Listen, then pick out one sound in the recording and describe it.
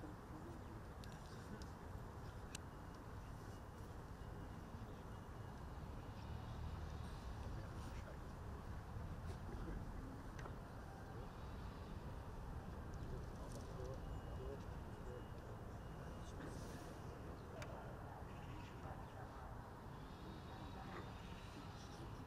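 Wind blows outdoors with a low rumble.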